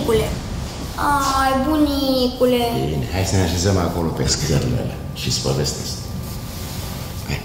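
An elderly man speaks calmly and gently.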